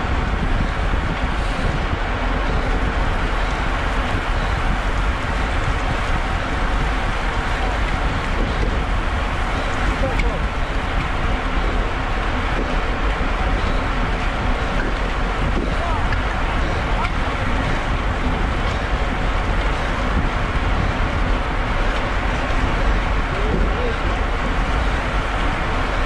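Bicycle tyres hiss on a wet road.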